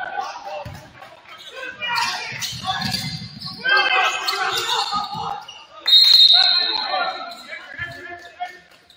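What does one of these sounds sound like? A basketball bounces on a hard floor with a hollow thud.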